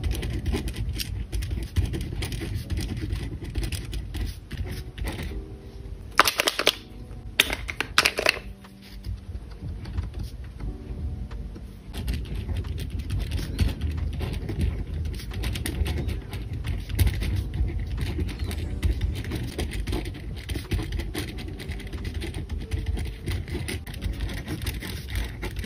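A pen scratches across paper close up.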